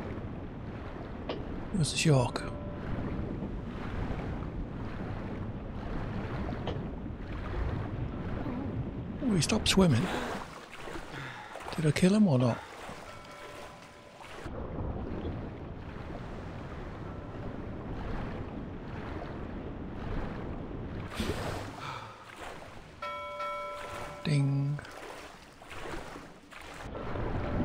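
Water splashes and gurgles as a swimmer moves through it.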